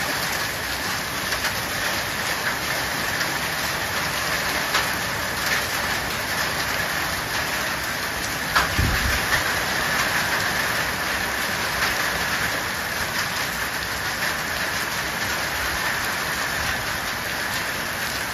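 Hailstones clatter on plastic containers.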